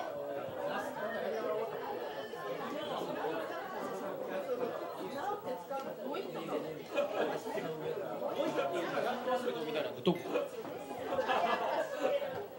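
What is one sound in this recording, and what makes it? A crowd of men and women chatter at once in a busy room.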